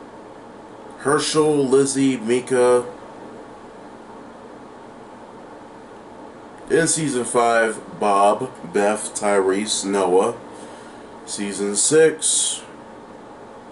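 A man speaks calmly and close to the microphone, in short bursts with pauses.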